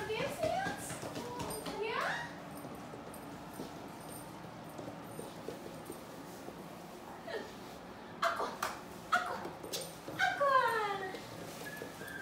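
A young woman talks and laughs excitedly nearby.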